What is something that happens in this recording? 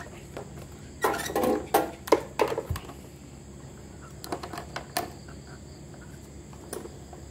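A plastic induction cooktop knocks and rattles as it is handled.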